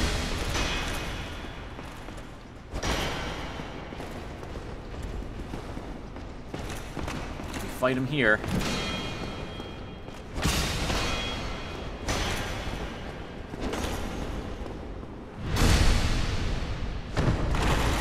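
Swords clash and strike with sharp metallic blows.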